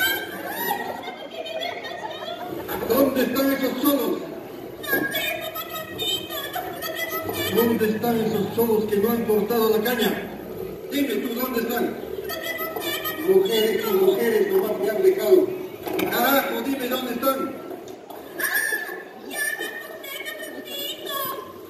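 Festive folk music plays loudly through loudspeakers in a large hall.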